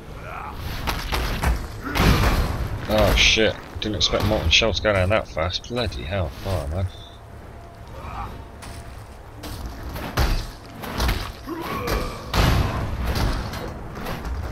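Fiery spells whoosh and crackle in a fight.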